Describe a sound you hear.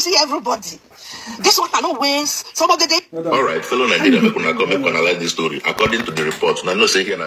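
A woman speaks with animation close to a phone microphone.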